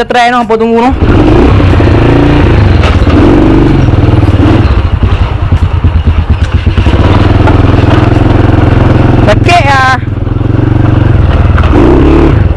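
A motorbike engine runs with a low, steady rumble while riding.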